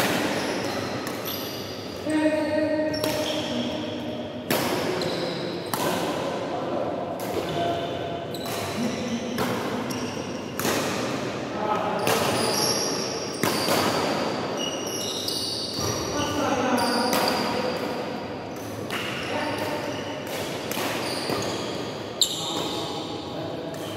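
Rackets strike a shuttlecock in a large echoing hall.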